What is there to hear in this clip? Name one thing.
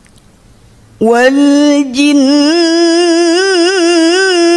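A young woman chants melodiously into a microphone, loud and close.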